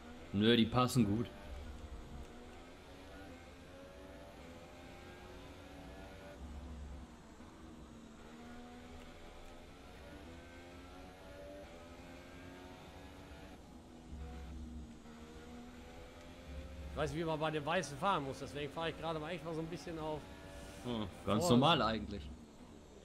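A racing car engine whines steadily, rising and falling in pitch as it shifts gears.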